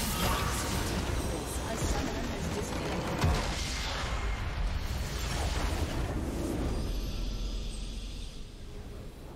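A large structure explodes with a deep rumbling blast.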